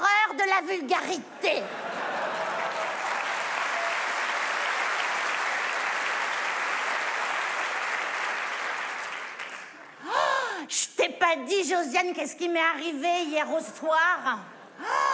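A middle-aged woman speaks with animation through a microphone.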